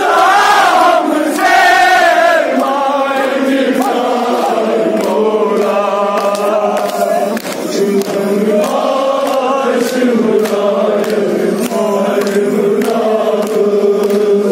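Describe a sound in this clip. A man sings a lament loudly through a microphone.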